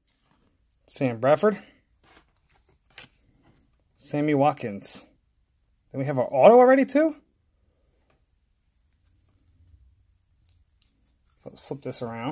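Trading cards slide and shuffle against each other.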